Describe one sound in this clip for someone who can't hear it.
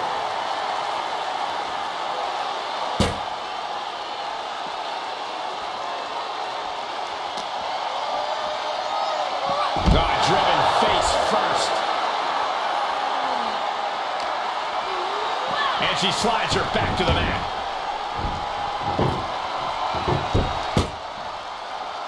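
A crowd cheers and roars steadily in a large arena.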